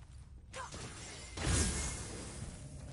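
An axe swings through the air with a whoosh.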